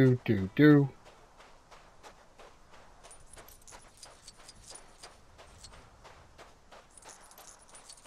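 Footsteps crunch softly and steadily on sand.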